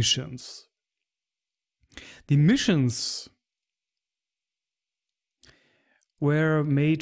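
A man talks with animation into a close microphone, in short bursts with pauses.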